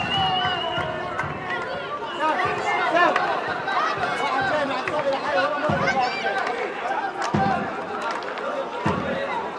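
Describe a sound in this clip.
A crowd of spectators shouts and chants outdoors.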